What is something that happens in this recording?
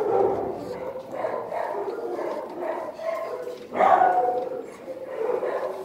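A dog licks and nibbles a treat from a person's fingers.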